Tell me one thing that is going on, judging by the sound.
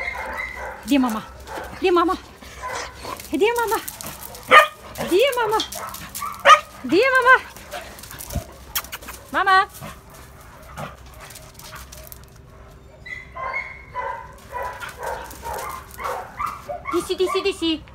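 A dog yelps and whines in high, bending cries close by.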